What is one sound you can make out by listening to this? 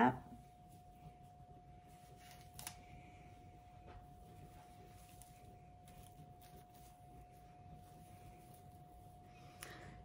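Hair rustles softly as a woman handles a wig.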